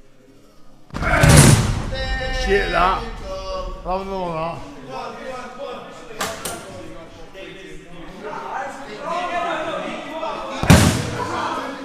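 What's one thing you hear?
A fist thuds hard into a punching bag.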